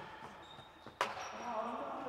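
A racket hits a ball with a sharp crack that echoes around a large hall.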